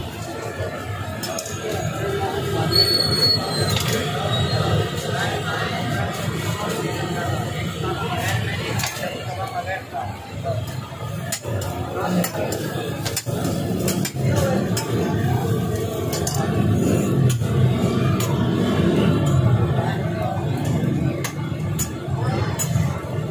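Food sizzles on a hot griddle.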